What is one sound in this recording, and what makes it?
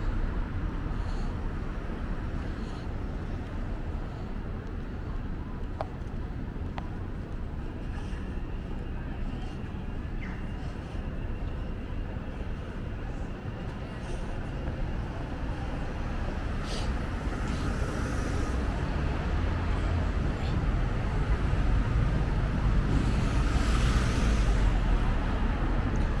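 City traffic rumbles steadily nearby and grows louder.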